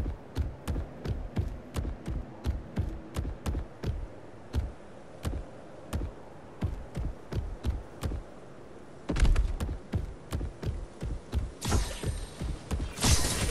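Heavy metallic footsteps thud at a quick, even pace.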